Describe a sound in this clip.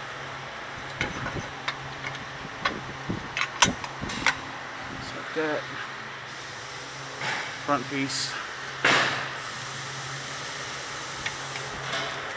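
Metal parts clink and knock close by.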